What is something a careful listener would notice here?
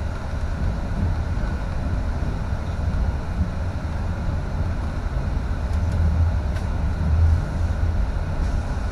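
A vehicle engine rumbles low and steady while driving.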